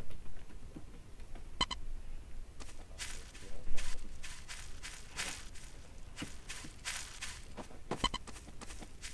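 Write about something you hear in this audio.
Footsteps swish and rustle through grass.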